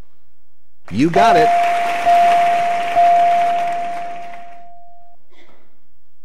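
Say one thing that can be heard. A bright chime rings as letter tiles light up one after another.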